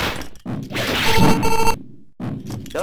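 An explosion bursts with a loud blast.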